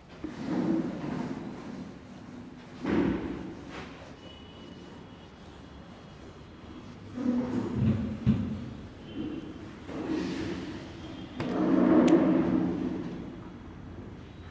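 A man lectures with animation, close by.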